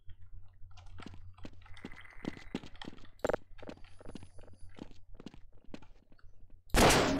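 Footsteps tap quickly on hard ground.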